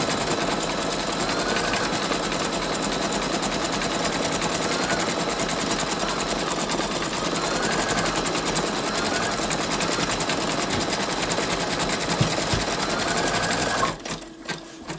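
An embroidery machine stitches with a fast, steady rattling hum.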